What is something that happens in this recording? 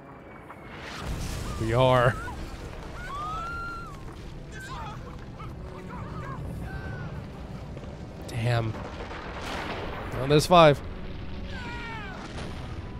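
A loud explosion rumbles and debris crashes down.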